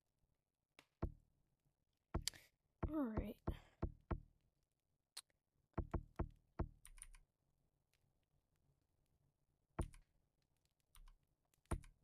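Keys click sharply as a keyboard is tapped.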